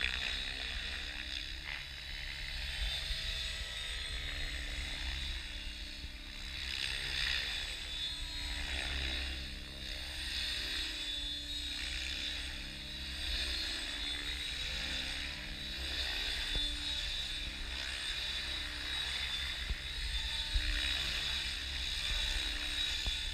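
A small model helicopter buzzes overhead, its whine rising and falling as it circles.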